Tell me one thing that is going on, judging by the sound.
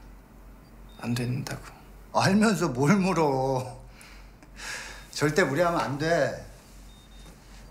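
A middle-aged man speaks warmly and cheerfully.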